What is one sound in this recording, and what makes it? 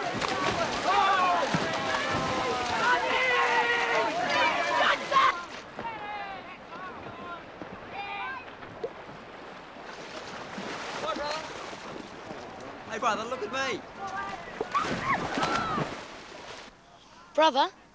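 Young boys shout and cheer with excitement.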